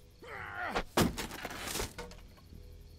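A wooden board bangs hard against a door.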